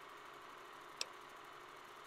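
A short soft click sounds once.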